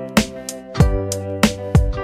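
A dog runs through shallow water with a splash.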